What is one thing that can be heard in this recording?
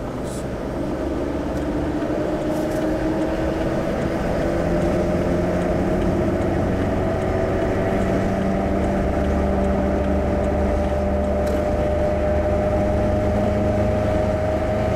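A car engine rises slowly in pitch as the car speeds up.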